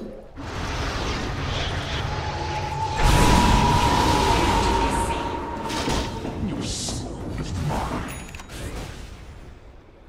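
Game spells burst and crackle in a fight.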